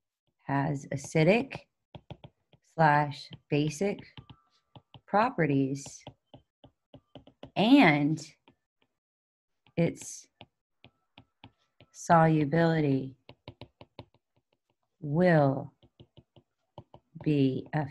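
A woman speaks calmly and slowly into a close microphone, explaining.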